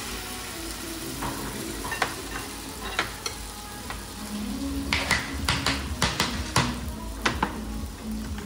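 A metal spoon clinks against ceramic dishes.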